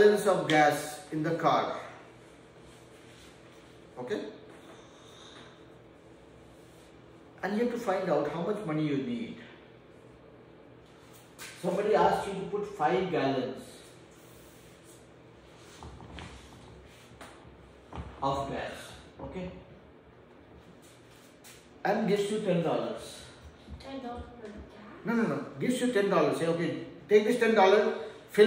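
A middle-aged man speaks calmly and clearly nearby.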